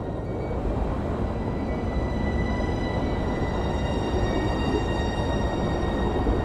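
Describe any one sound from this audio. A deep engine rumbles steadily.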